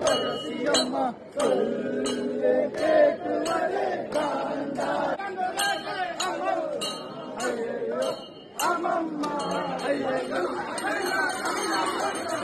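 A crowd of men chants and sings loudly close by.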